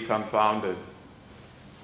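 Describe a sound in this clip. A man sings a short phrase, echoing in a resonant room.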